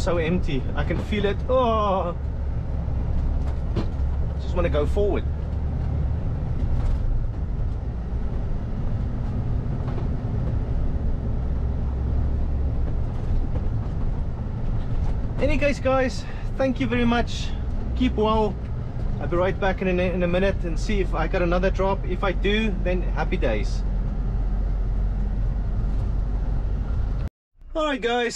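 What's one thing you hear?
A truck engine rumbles steadily as the truck drives along a road.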